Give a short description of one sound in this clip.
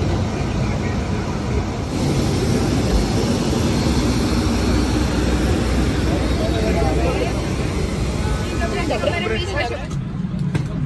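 Jet engines roar loudly outdoors.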